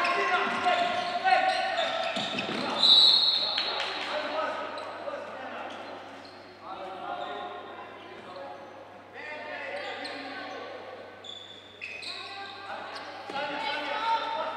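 A ball bounces on a hard indoor court, echoing in a large hall.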